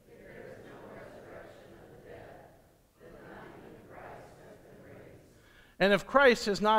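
A congregation reads aloud together in unison, heard from a distance in a large room.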